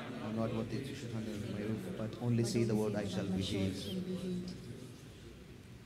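An elderly man chants a prayer into a microphone in a large echoing hall.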